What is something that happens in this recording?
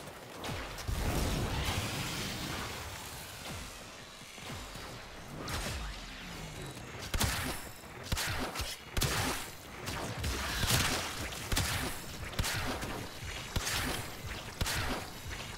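Blades swish and slash in quick strikes.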